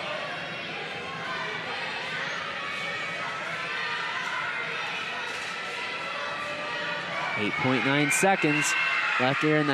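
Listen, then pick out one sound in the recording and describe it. A large indoor crowd murmurs and chatters, echoing through a gym.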